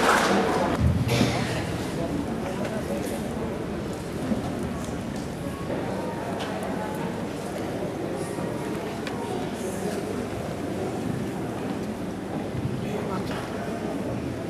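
A crowd murmurs softly in an echoing hall.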